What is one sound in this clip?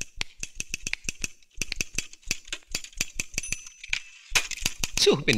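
A typewriter clacks with quick keystrokes.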